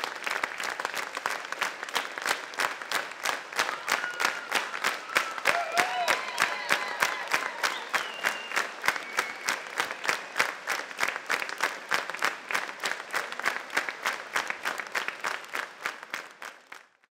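A large audience claps in rhythm in a large hall.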